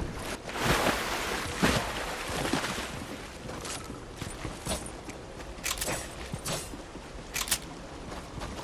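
Footsteps thud quickly across wooden boards.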